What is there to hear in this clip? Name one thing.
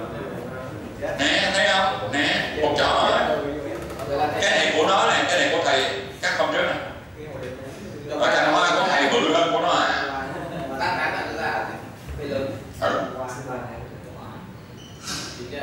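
A man speaks with animation nearby.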